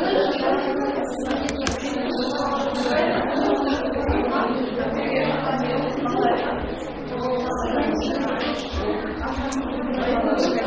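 Many children chatter at once in a room.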